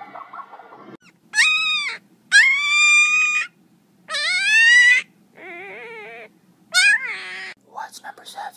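A puppy whines and yelps in high, rising cries.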